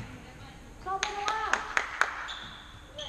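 A ball is kicked with sharp thuds that echo in a large hall.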